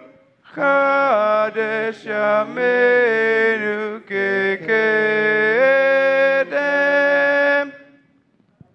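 A man sings a slow chant into a microphone in a large room.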